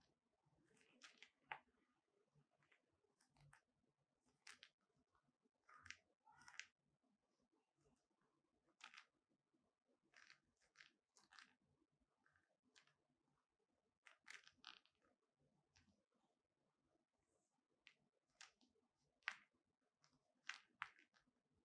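Leather gloves creak and rustle as hands squeeze and rub them together.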